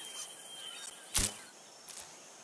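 A small mechanical creature leaps with a sudden whoosh.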